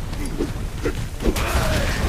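An electric barrier crackles and hums.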